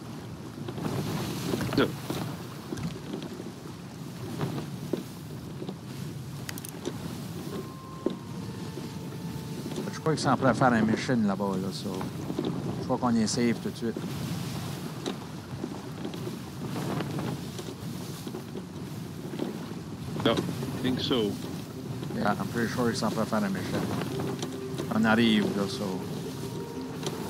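Strong wind blows over open sea.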